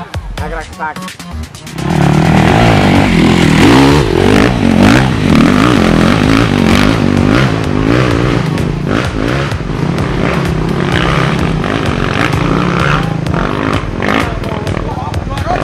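A dirt bike engine revs loudly and roars up a slope.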